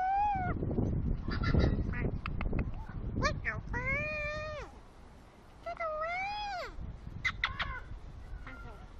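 A parrot squawks and whistles loudly close by.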